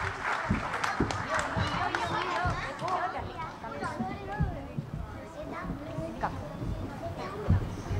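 Children's feet thump on a wooden stage.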